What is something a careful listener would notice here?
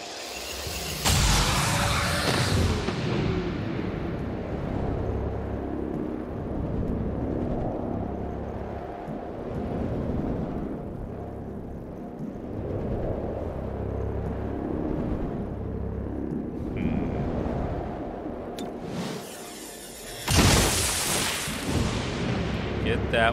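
Gunfire bursts loudly.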